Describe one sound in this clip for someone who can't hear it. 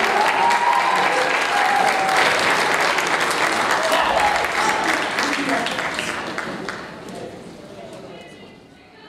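An audience applauds and cheers loudly in a large hall, then fades.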